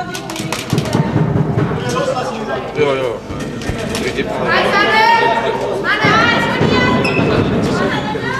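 Young women handball players shout to each other in an echoing sports hall.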